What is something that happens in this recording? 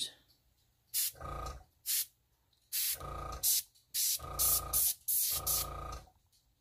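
An airbrush hisses in short bursts of spray.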